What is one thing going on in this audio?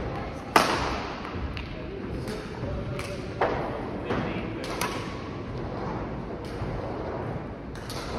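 Badminton rackets hit a shuttlecock sharply in a large echoing hall.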